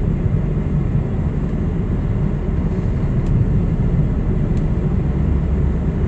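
A heavy truck passes by in the other direction.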